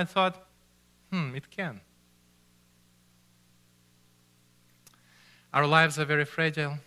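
A man speaks expressively into a microphone, pausing between phrases.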